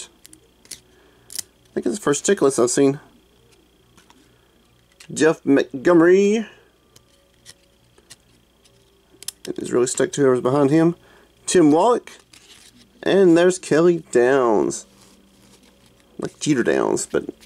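Stiff trading cards rustle and flick against each other in hands.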